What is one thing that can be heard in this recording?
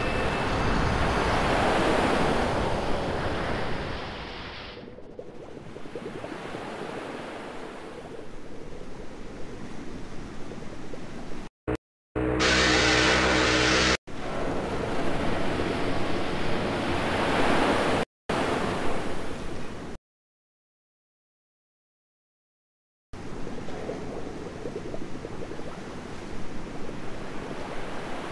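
Water churns and rushes as a large ship sinks.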